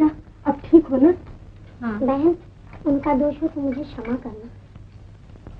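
Women talk with one another.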